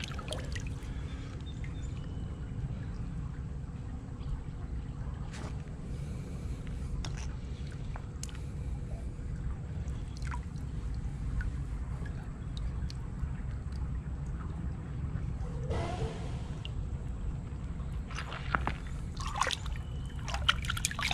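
Shallow stream water laps and trickles over stones.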